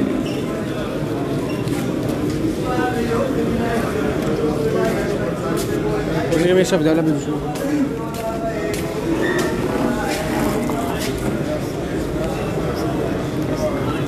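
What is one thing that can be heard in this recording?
A crowd of men talks and sings outdoors.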